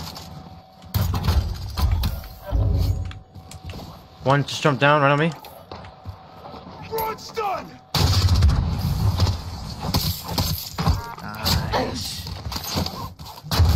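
Gunfire bursts rapidly.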